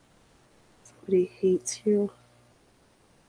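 A woman speaks a few words briefly and close by.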